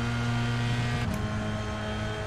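A racing car engine briefly changes pitch as the gear shifts.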